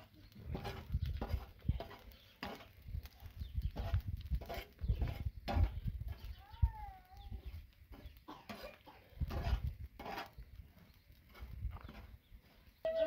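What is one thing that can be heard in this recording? A metal spatula scrapes and stirs over a hot griddle.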